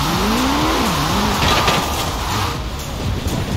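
Metal scrapes against a wall with a grinding screech.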